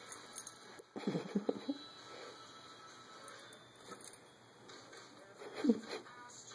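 A small dog yips and barks close by.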